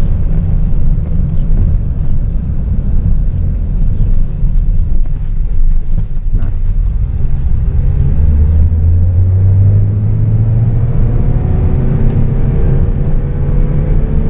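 A car engine hums steadily and revs up.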